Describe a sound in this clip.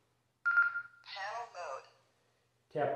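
A voice comes tinny through a small radio speaker.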